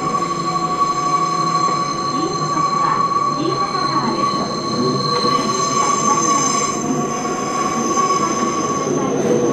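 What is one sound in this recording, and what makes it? A train rumbles steadily along its tracks from inside a carriage.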